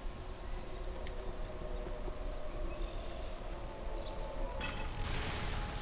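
A crystal hums and crackles with magic energy.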